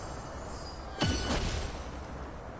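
A sudden magical burst booms and rings out.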